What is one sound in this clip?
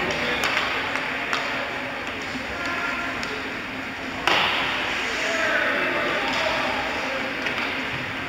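Hockey sticks click against a puck.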